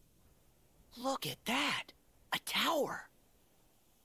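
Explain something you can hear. A young man calls out with excitement.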